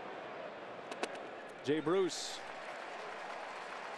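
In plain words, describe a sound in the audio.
A baseball smacks into a catcher's leather mitt.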